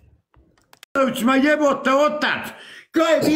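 An older man speaks loudly and with animation over an online call.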